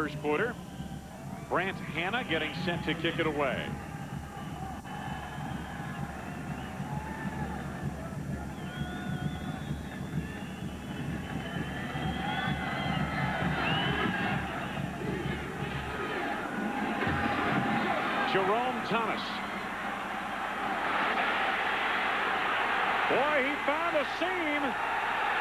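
A large stadium crowd cheers and roars, swelling louder toward the end.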